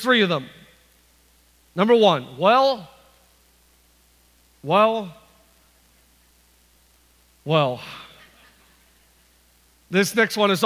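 A man speaks calmly into a microphone in a large room, pausing between phrases.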